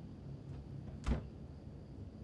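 A wooden wardrobe door shuts with a knock.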